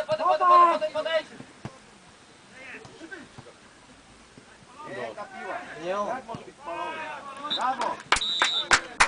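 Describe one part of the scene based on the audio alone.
Men shout and cheer nearby outdoors.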